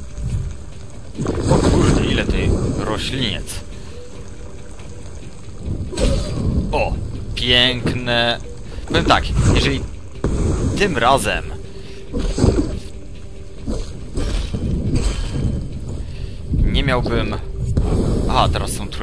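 Blades slash and strike in a fast fight.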